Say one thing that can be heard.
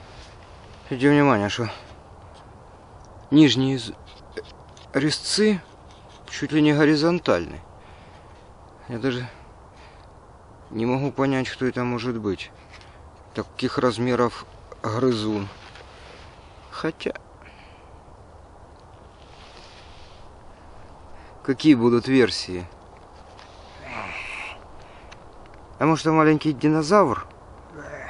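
A middle-aged man speaks calmly and close by, in short phrases with pauses.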